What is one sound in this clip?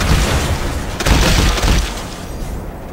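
An explosion booms and debris clatters.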